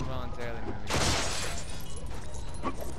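Plastic bricks burst apart and clatter.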